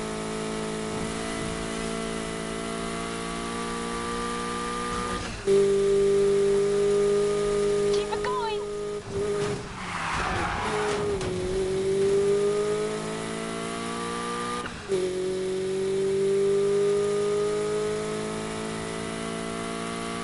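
A car engine roars at high revs, shifting gears with sudden jumps in pitch.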